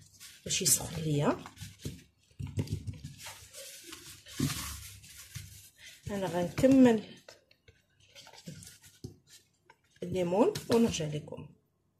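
Fingers press and rub a soft rubber mould with a faint scraping.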